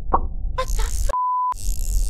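A woman talks into a close microphone with animation.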